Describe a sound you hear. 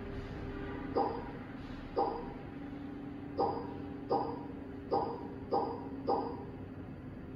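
A slot machine chimes in short bright bursts as reels stop.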